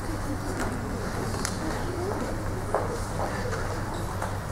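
Footsteps tap on a wooden stage floor.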